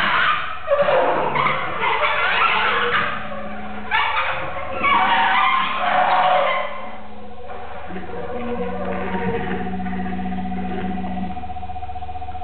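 A reed instrument holds long, steady notes.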